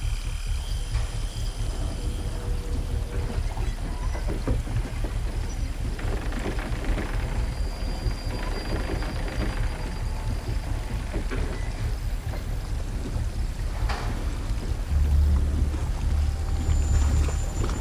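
Footsteps creak softly on wooden planks.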